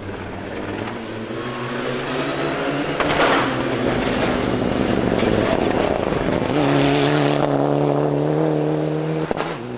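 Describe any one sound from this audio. Gravel sprays and crunches under a car's tyres.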